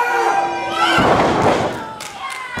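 A wrestler's body slams onto the ring mat with a heavy thud.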